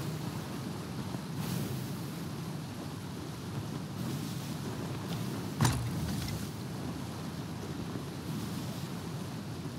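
Strong wind blows steadily across open water.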